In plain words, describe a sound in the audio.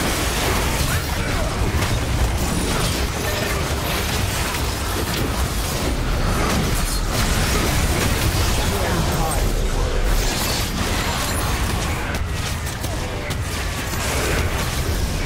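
Game spell effects whoosh and crackle in a fast fight.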